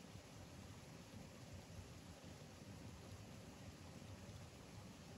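Water laps softly as a small animal swims close by.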